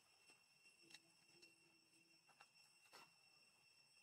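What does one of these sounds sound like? A small monkey's feet rustle through dry leaves.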